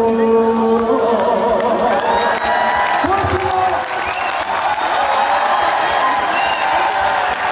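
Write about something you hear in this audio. Amplified pop music plays loudly through loudspeakers.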